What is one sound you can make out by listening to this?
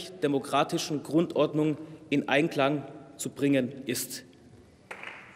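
A man speaks formally into a microphone in a large hall.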